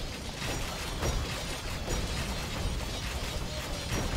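Swords and shields clash in a noisy battle.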